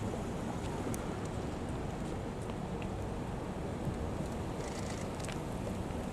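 Car engines hum as vehicles drive slowly past outdoors.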